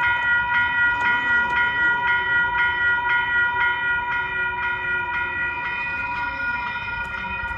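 A crossing gate arm lowers with a low motor whine.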